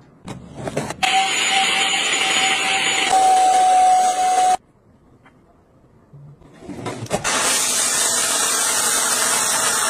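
A vacuum cleaner whirs loudly and steadily.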